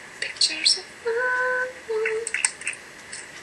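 A young woman speaks softly close to a microphone.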